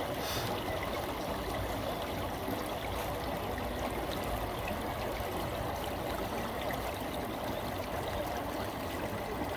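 A shallow stream babbles and trickles over stones close by.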